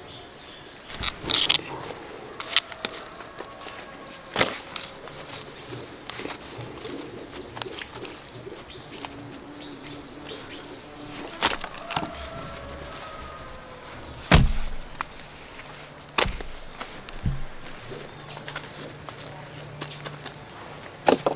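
Hands pull roots from soil, crumbling and rustling the dirt.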